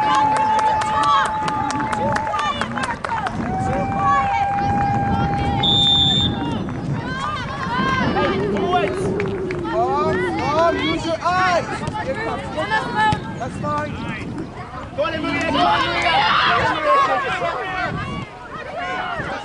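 Young players call out to one another faintly across an open field.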